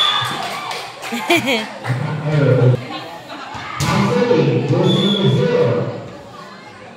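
Young women shout and call out to each other nearby.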